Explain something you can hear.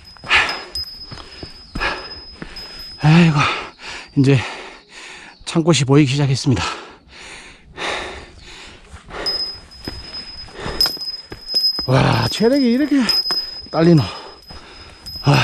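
Footsteps crunch on a rocky dirt trail strewn with dry leaves.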